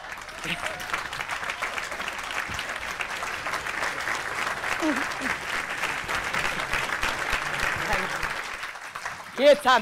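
A large audience laughs loudly.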